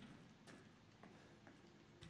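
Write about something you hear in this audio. A locked metal door rattles when its handle is tried.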